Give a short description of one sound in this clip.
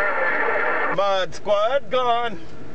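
A radio loudspeaker gives out short warbling electronic tones.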